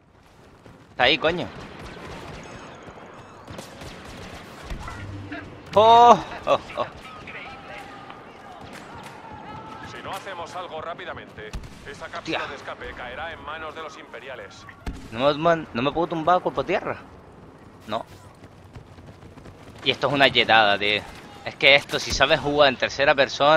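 Laser blasters fire in rapid bursts of zapping shots.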